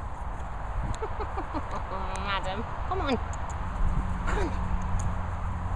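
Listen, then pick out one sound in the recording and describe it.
A dog whines in short high-pitched bursts.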